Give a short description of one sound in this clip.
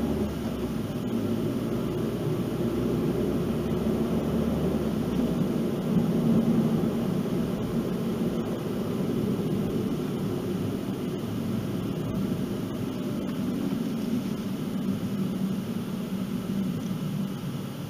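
A car's engine hums steadily with tyres rolling on the road, heard from inside the car.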